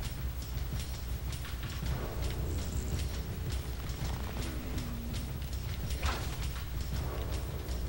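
Footsteps rustle steadily through leafy undergrowth.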